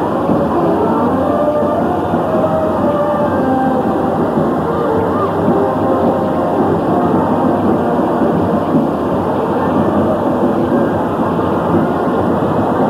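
A large crowd murmurs and chatters at a distance below.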